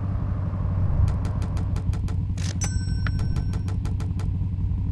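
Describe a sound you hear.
Short electronic chimes ring out in quick succession.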